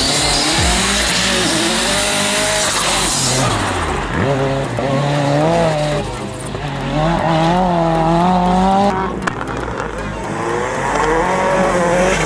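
A rally car engine revs hard, its pitch rising and falling as it accelerates.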